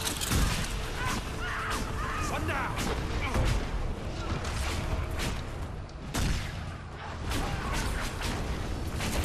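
Heavy weapon blows land with sharp impacts.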